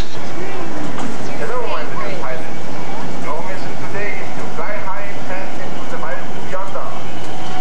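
Children chatter.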